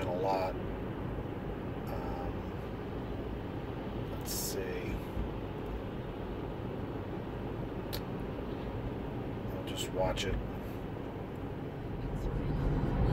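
A car's road and engine noise rumbles steadily from inside.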